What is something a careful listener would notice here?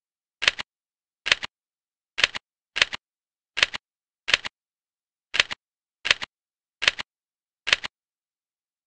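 Short electronic clicks sound in a quick, uneven series.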